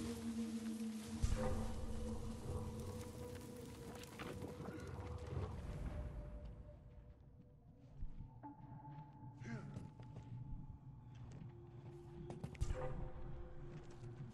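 Footsteps crunch softly on rough ground.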